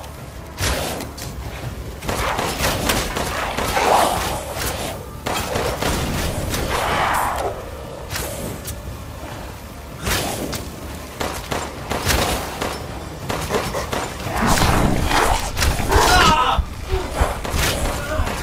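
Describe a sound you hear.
Pistol shots ring out sharply, one after another.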